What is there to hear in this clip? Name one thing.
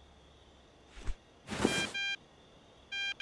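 A metal crowbar clanks as it is picked up.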